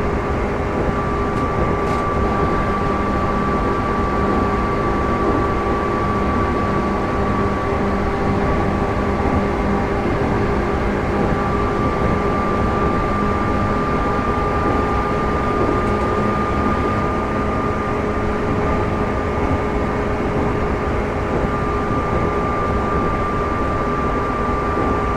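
A train's electric motor hums steadily as it runs.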